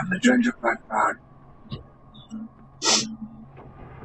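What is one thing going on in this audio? A wooden sliding door slides open.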